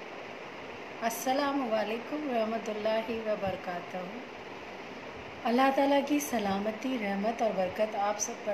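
A young woman speaks calmly and close up, with pauses.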